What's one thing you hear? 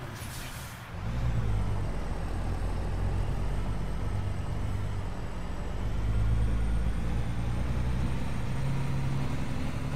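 A heavy truck engine rumbles low and steady.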